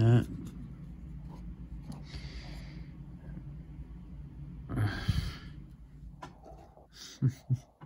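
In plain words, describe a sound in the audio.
Playing cards rustle and slide against each other in a hand.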